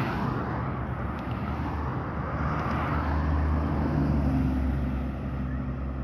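A bus rumbles by with a deep engine drone.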